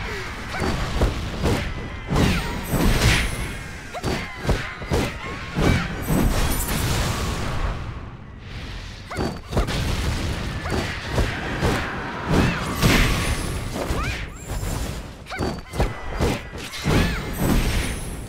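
Sword blows strike and clash in rapid bursts of impacts.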